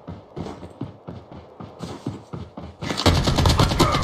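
Footsteps thud on grass.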